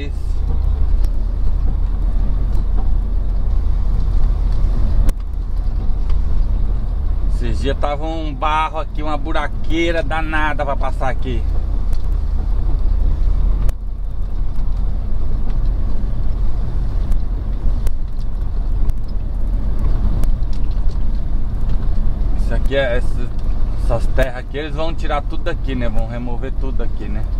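A heavy truck engine rumbles steadily from inside the cab.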